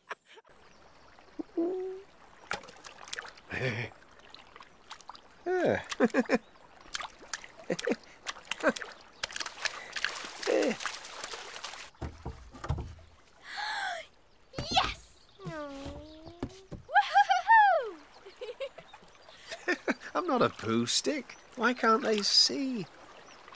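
Water splashes gently as a stick floats along.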